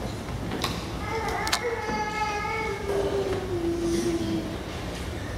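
A man chants slowly in a large echoing room.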